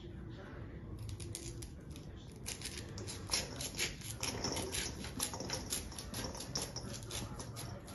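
A knife scrapes kernels off a corn cob.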